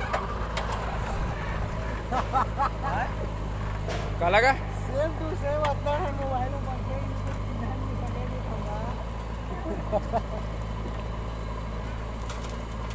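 A diesel engine rumbles steadily nearby, outdoors.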